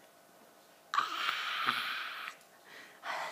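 A young boy gulps down a drink.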